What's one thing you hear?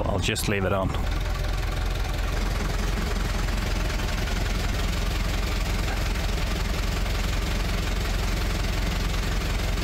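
An engine idles with a steady low rumble close by.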